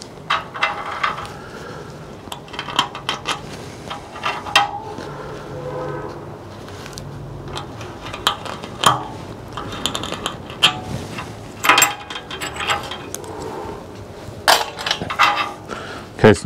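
Small metal tools click and tap against a metal tabletop.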